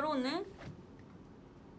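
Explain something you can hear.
A young woman sings a short, bright, high note.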